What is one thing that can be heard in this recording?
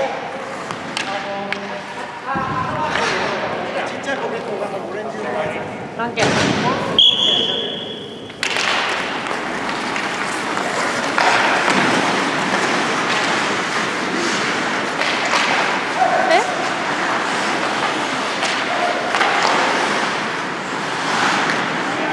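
Skate blades scrape and hiss across the ice in a large echoing rink.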